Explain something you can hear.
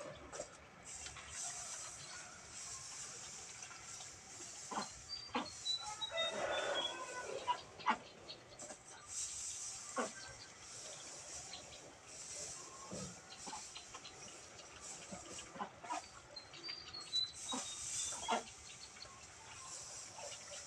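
Dry straw rustles and crackles as a man spreads it by hand.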